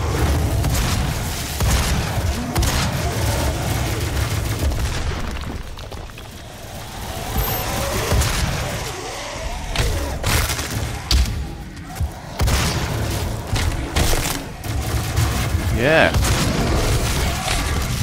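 Monsters growl and snarl.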